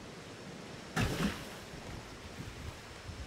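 Water splashes as someone drops into it.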